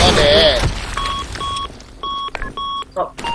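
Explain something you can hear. A bomb being armed beeps in short, evenly spaced electronic tones.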